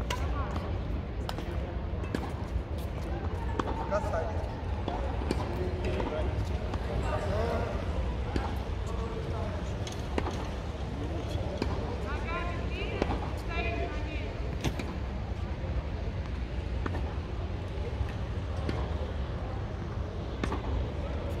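Rackets hit a ball with sharp pops that echo through a large hall.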